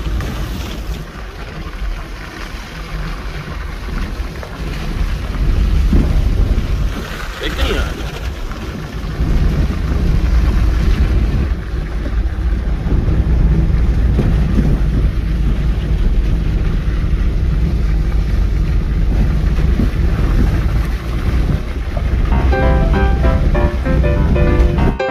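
Tyres rumble over a rough road.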